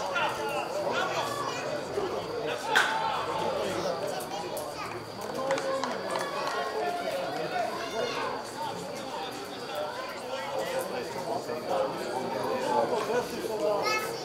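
Young men shout to each other across an open outdoor field, heard from a distance.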